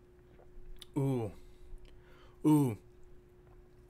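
A young man makes a falling, sighing sound.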